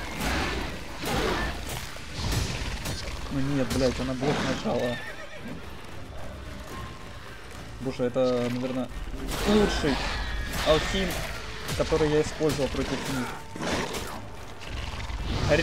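Sword blows strike with sharp clashing thuds.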